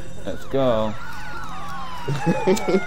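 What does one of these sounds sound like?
Police sirens wail nearby.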